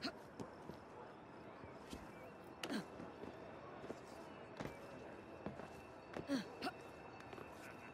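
Hands and boots knock against a brick wall while climbing.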